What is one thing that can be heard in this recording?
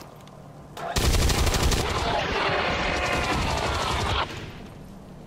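A heavy machine gun fires a long rapid burst.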